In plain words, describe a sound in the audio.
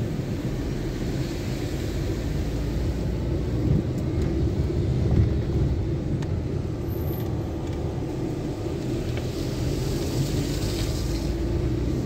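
A car engine rumbles steadily from inside the cabin.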